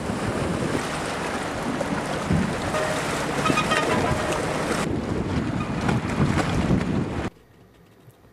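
Wind blows hard over choppy water.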